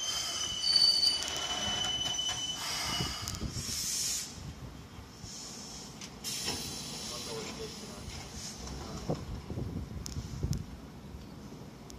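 A train rolls into a station and slows to a stop.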